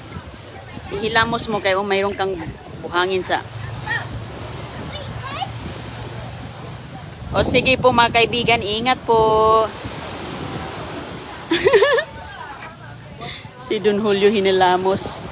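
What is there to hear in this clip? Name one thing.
A young boy talks and squeals close by.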